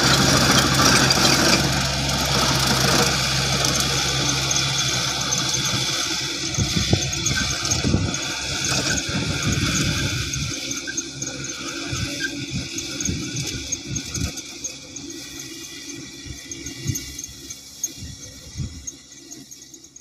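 A rotary tiller churns through dry grass and soil.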